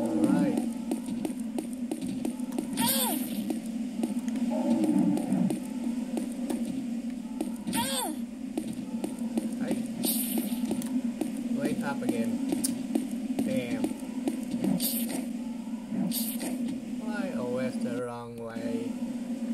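Game music and effects play through a small phone speaker.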